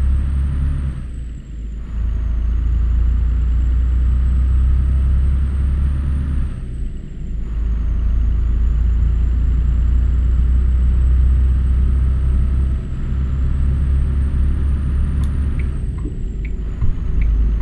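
A truck engine briefly drops off during gear changes.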